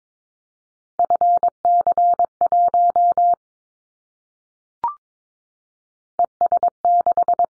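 Morse code beeps out in rapid, even tones.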